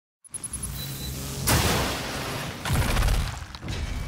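Flames roar.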